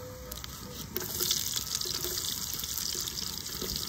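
Onion pieces patter into a clay pot.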